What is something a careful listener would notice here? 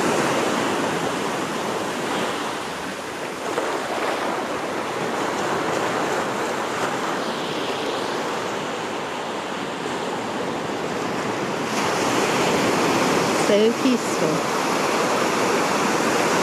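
Small waves break and wash up onto sand.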